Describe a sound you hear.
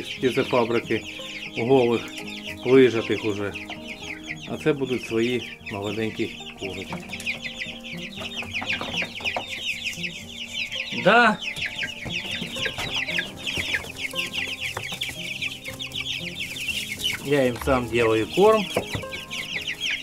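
Young hens cluck and call now and then.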